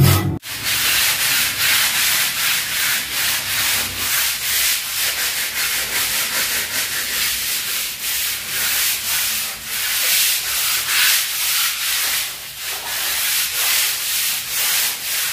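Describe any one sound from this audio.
A trowel scrapes rhythmically across a rough plaster wall.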